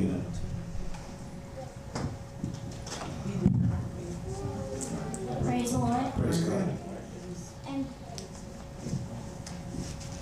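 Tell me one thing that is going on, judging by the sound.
An elderly woman speaks into a microphone through loudspeakers.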